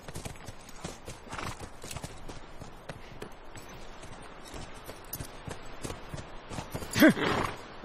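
Horse hooves clop on the ground.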